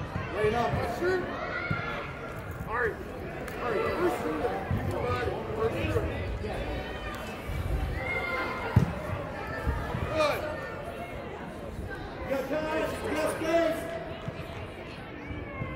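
Spectators shout and cheer throughout in a large echoing hall.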